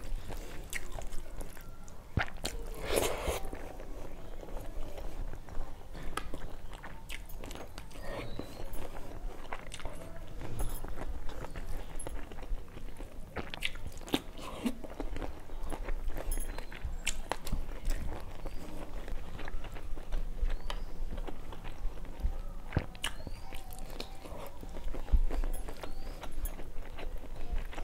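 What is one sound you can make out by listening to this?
Fingers squish and mix rice and curry on a steel plate.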